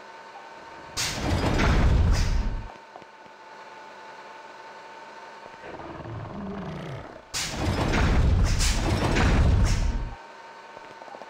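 A heavy metal door slides open with a loud rumbling whoosh.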